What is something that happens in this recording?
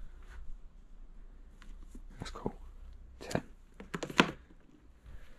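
A cardboard tube rubs and taps against a hand.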